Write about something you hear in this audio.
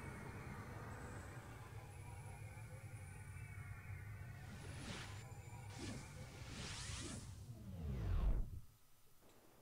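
A deep whooshing rumble swells and then cuts off.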